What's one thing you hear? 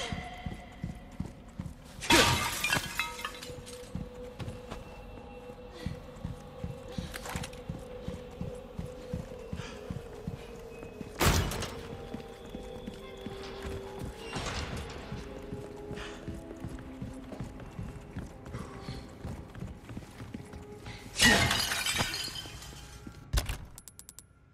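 Footsteps thud quickly on hard floors and stairs.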